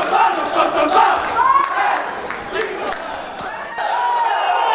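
A group of men cheer and shout loudly together close by.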